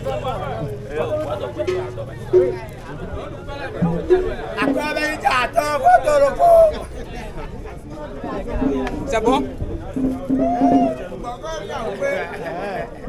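Several people talk and call out nearby outdoors.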